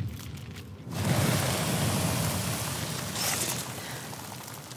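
Ice shatters and crashes loudly with a rushing roar.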